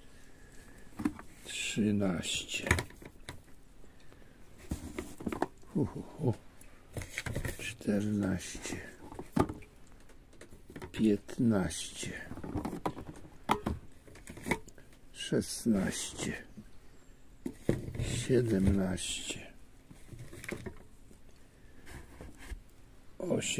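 Metal cans clink and knock together as they are handled.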